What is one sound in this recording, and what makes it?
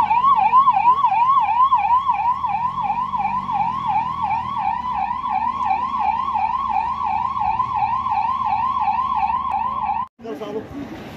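An ambulance siren wails in a fast, steady warble close by.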